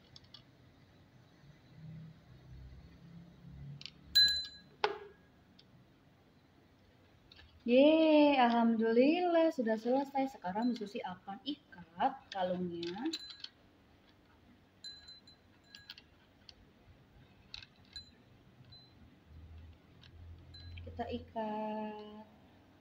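Small wooden beads click against each other and a ceramic bowl.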